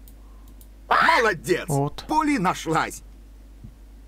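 A cartoon parrot squawks and chatters.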